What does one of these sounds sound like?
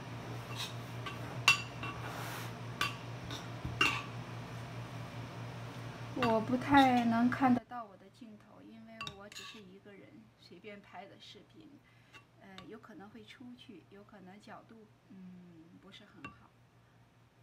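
A spoon scrapes and taps against a bowl.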